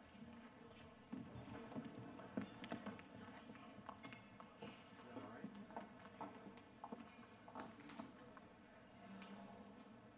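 Footsteps tap slowly on a hard floor.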